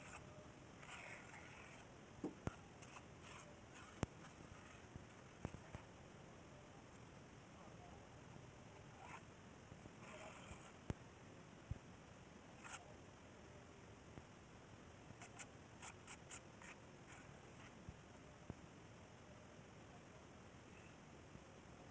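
A steel trowel scrapes and taps on wet cement.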